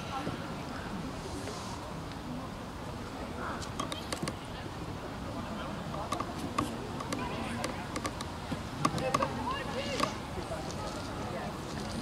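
Young men shout to each other in the distance across an open outdoor pitch.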